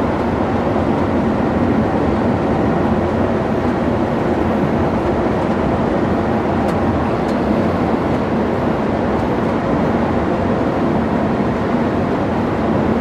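A vehicle's engine drones steadily as it drives along a road.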